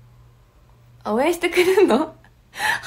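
A young woman speaks brightly and close to a microphone.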